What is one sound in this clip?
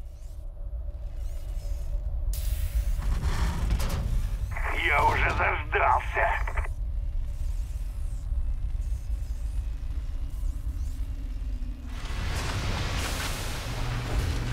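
A low mechanical hum drones steadily.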